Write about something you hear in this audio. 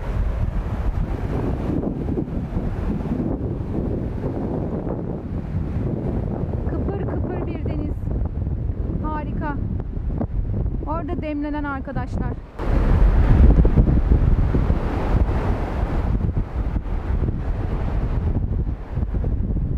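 Waves splash and wash over pebbles on a windy shore.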